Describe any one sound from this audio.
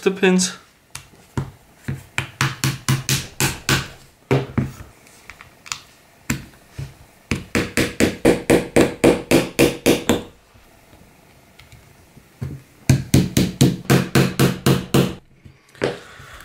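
A plastic mechanism clicks in quick, repeated bursts.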